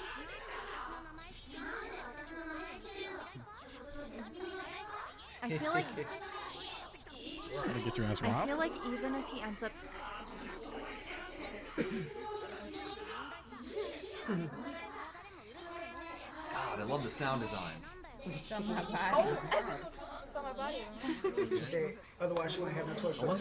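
Young men and women react with exclamations over microphones.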